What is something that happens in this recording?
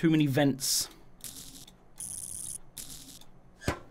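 Short electric buzzing sounds play as wires are connected in a game.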